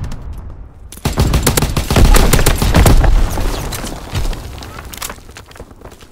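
A rifle fires rapid gunshots.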